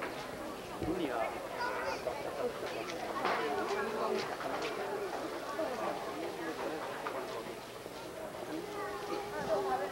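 A horse's hooves thud as it canters and clears a jump.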